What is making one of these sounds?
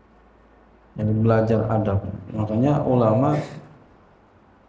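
A man speaks calmly into a microphone, close by.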